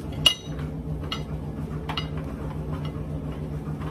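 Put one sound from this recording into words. A knife taps on a cutting board.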